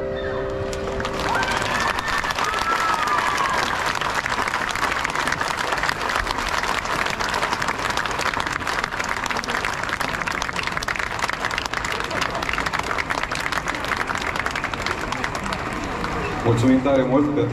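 A large crowd applauds and cheers.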